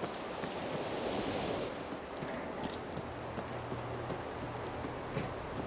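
Wind blows and rushes steadily outdoors.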